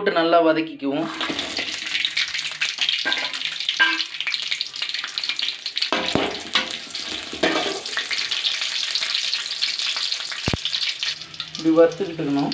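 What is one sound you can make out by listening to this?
Garlic and dried chillies sizzle loudly in hot oil.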